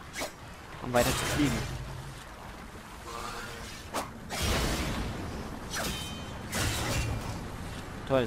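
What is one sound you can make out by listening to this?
A blade strikes a metal target with sharp clangs.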